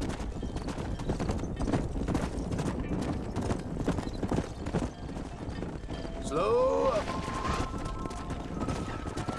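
Horse hooves pound rapidly on dry ground.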